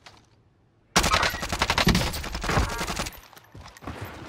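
Gunshots crack from a game.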